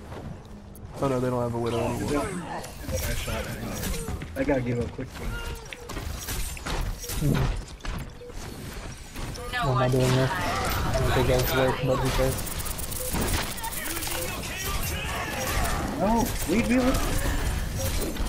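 Game gunfire and explosions crackle and boom.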